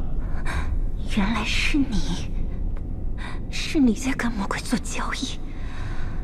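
A young woman speaks with distress, close by.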